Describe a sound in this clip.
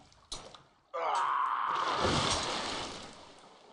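Water splashes heavily.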